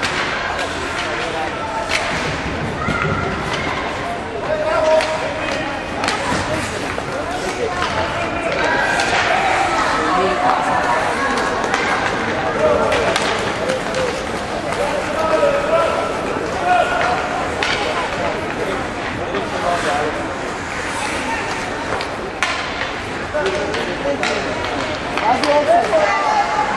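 Skates scrape across ice in a large echoing rink.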